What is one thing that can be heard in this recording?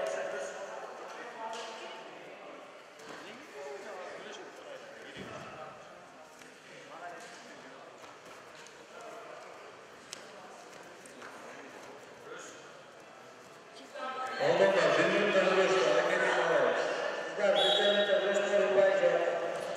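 A crowd chatters softly in an echoing hall.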